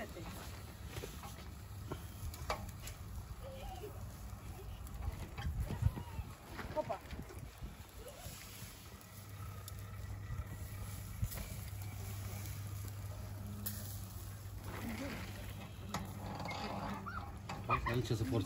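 Embers crackle and pop under a roasting spit.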